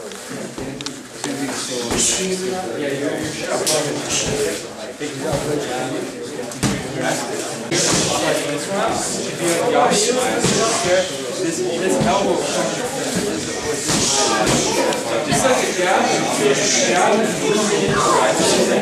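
Punches and kicks thud on pads.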